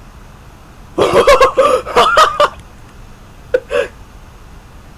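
A young man laughs loudly close to a microphone.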